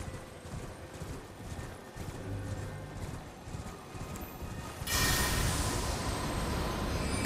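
Horse hooves thud steadily on soft ground.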